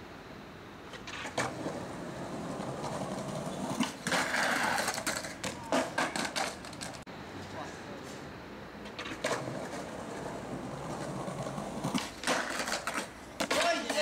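Skateboard wheels roll and rumble on stone pavement.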